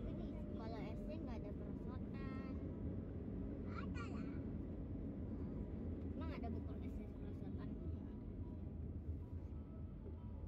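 Tyres rumble steadily on the road inside a moving car.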